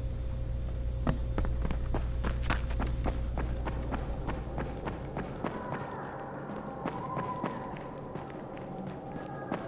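Footsteps thud quickly on a hard floor and stairs.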